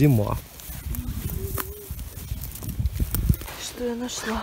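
Footsteps crunch on dry pine needles and twigs.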